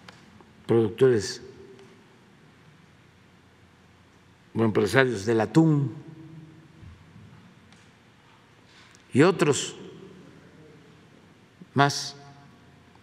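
An elderly man speaks slowly and calmly into a microphone, in short phrases with pauses, in a room with some echo.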